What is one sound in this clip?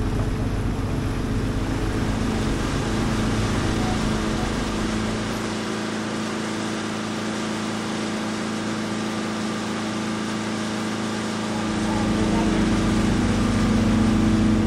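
A boat engine hums steadily throughout.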